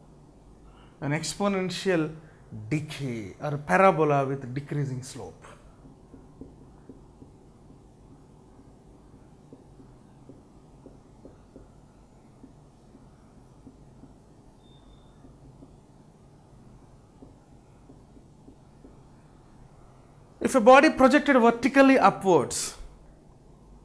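A man explains calmly into a close microphone, with pauses.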